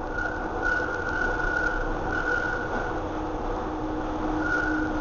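A train's motor whines with a steady tone.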